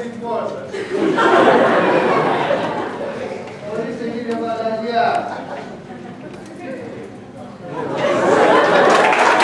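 An audience laughs and claps.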